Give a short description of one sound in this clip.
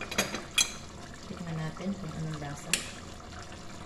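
A metal spoon clinks against a pot.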